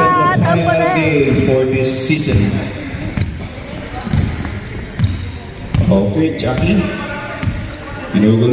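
A basketball bounces on a hard floor, echoing in a large hall.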